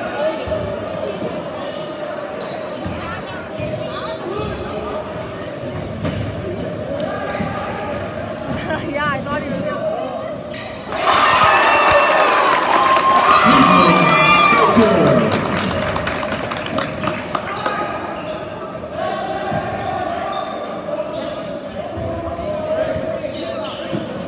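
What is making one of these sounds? A crowd chatters and murmurs in a large echoing gym.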